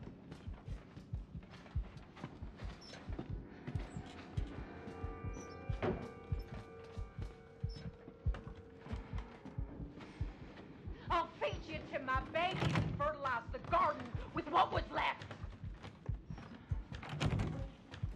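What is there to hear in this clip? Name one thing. Slow footsteps thud on a wooden floor.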